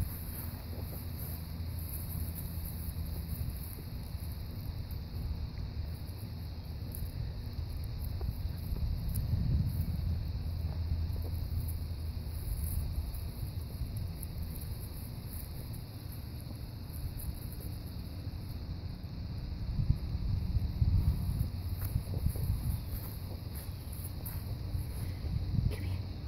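Puppies scuffle and patter on dry grass.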